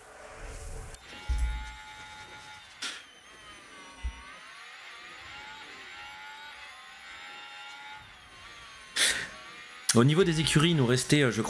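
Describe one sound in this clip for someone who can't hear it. A racing car engine whines, rising and falling in pitch.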